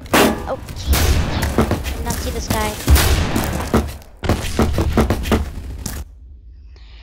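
Gunshots fire in quick, loud bursts.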